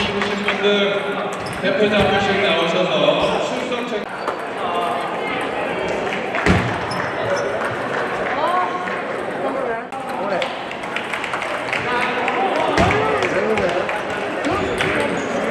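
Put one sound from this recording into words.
Ping-pong balls click sharply against paddles and tables.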